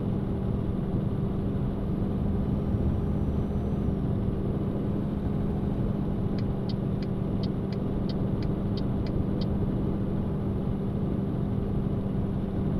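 A truck engine hums steadily at cruising speed.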